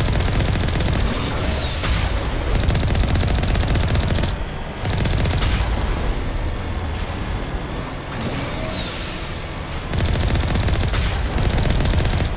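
A heavy vehicle's engine rumbles as it drives over rough ground.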